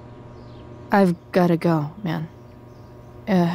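A young woman speaks quietly in short phrases.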